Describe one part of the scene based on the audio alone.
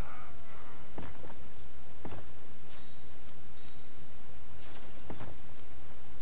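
Stone building pieces knock dully as they are pulled down, a few times.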